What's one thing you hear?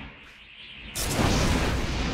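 A magical burst whooshes and sparkles.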